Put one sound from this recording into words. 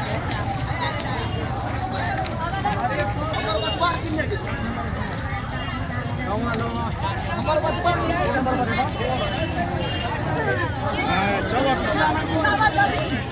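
Men and women nearby shout and chant loudly together.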